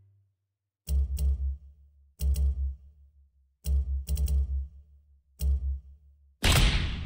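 Soft menu thuds sound in quick bursts.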